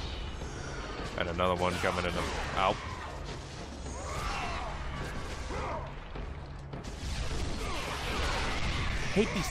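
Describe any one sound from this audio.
Blades slash through the air.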